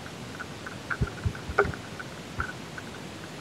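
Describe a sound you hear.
A bicycle rattles and knocks over bumps in the trail.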